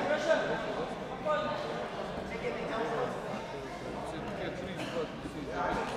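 A crowd of young men and boys chatters and calls out in a large echoing hall.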